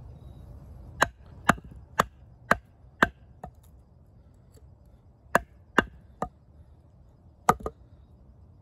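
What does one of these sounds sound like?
A wooden mallet knocks sharply on the back of a knife blade, again and again.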